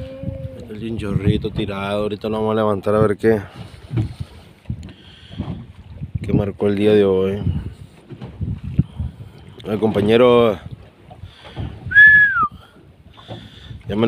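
Water splashes against the side of a small boat.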